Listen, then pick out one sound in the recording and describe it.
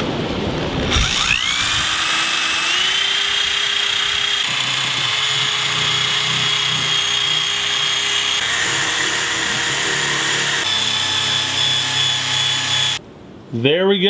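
A power drill whirs up to speed and spins steadily with a high whine.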